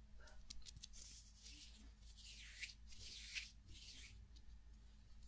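A young woman whispers softly very close to the microphone.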